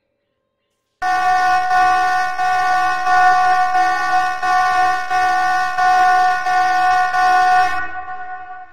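A loud, steady droning announcement tone plays from a game.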